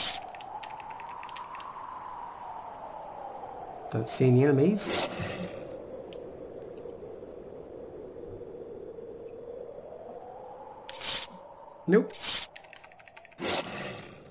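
A magic spell bursts with a bright shimmering chime.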